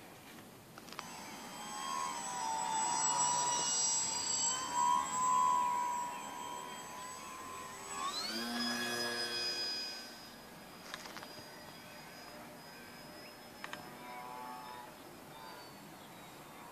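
A model airplane's electric motor whines loudly overhead, rising and falling in pitch as it flies past.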